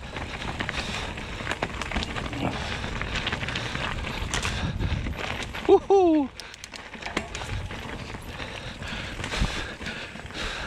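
Bicycle tyres crunch and rattle over dry leaves and stones.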